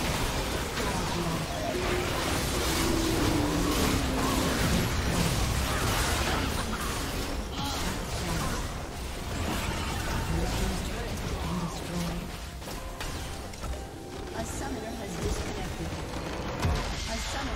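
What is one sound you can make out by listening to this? Video game spell and combat effects clash and crackle busily.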